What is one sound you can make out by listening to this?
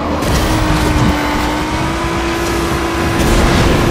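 Tyres skid and scrape on dirt as a kart drifts.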